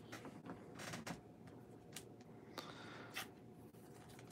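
Trading cards rustle softly in hands, close by.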